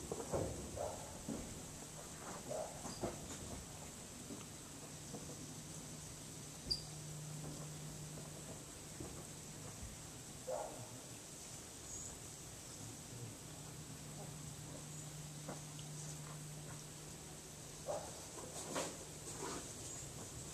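Metal wind chimes tinkle softly in a light breeze.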